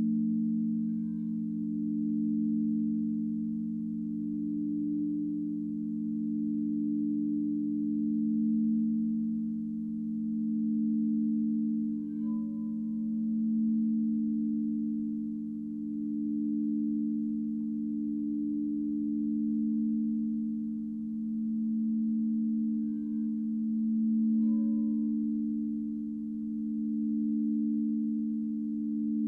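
Crystal singing bowls hum in a steady, swelling drone.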